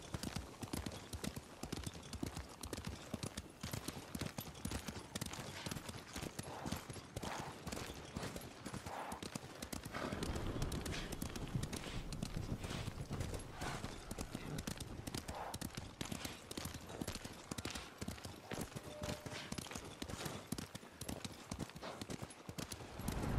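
Horse hooves pound rapidly on a dirt path.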